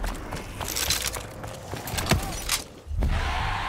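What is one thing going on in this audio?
A gun fires in quick, loud shots.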